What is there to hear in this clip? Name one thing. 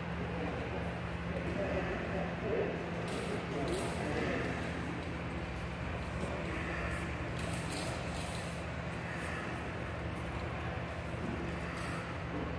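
Bare feet shuffle and thump on a padded mat.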